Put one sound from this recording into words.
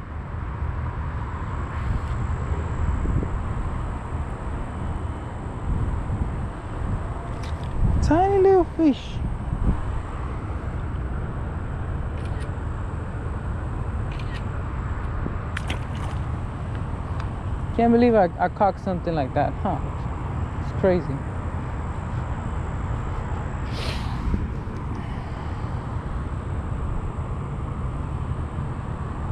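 Wind blows outdoors, rumbling steadily.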